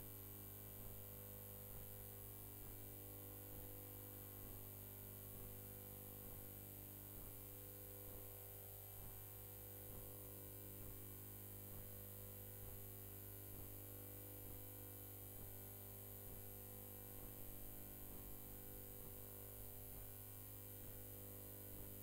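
Feet shuffle and squeak on a canvas floor.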